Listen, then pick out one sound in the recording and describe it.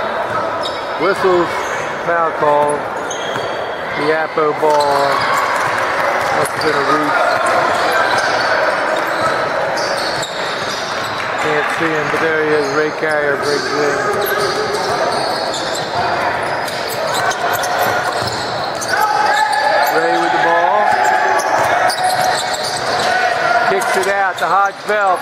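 Sneakers squeak sharply on a hardwood court, echoing in a large hall.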